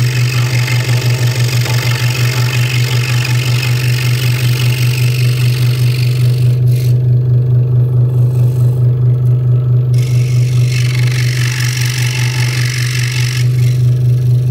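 A saw blade rasps through thin wood.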